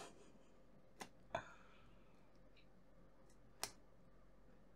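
Metal tweezers tap and click against a small part.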